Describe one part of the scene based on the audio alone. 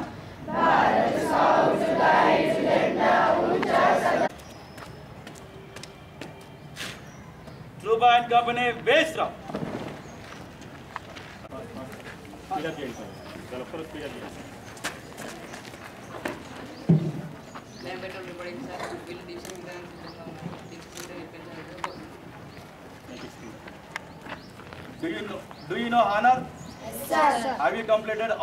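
A group of boys chant loudly in unison outdoors.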